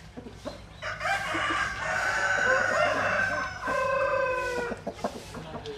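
Roosters crow in the distance.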